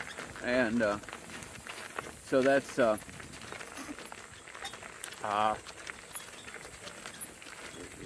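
Cart wheels crunch over gravel.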